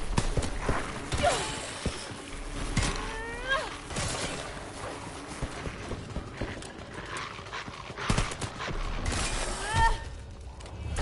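Zombies growl and snarl up close.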